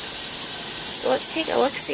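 Sheets of paper rustle as they are leafed through.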